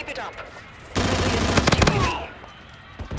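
A gun fires a rapid burst close by.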